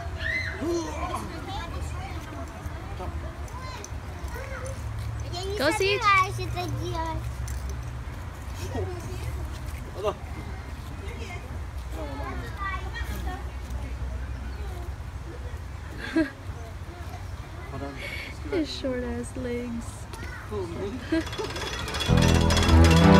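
A man talks gently to small children close by.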